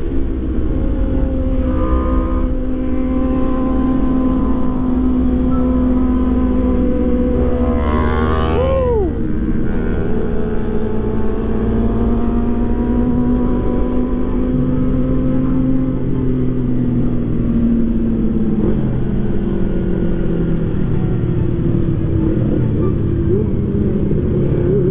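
Wind rushes past the rider.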